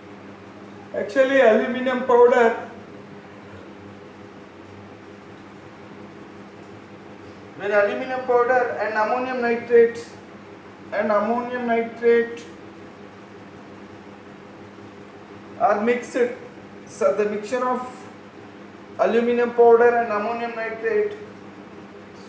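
A man speaks calmly, explaining, close by.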